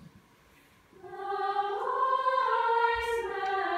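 A choir of men and women sings together in a large echoing hall.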